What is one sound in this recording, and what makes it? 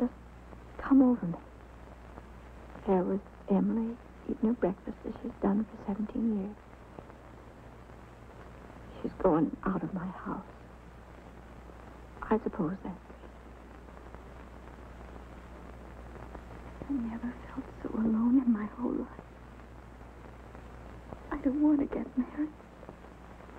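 An older woman speaks softly and haltingly, close by.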